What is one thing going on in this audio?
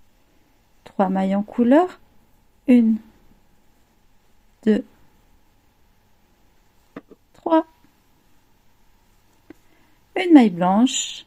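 Metal knitting needles click softly together.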